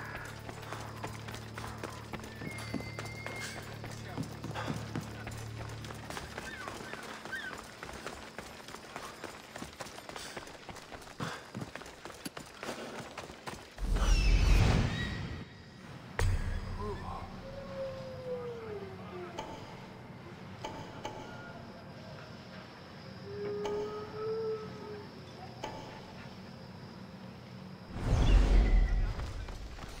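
Footsteps run quickly over stone paving.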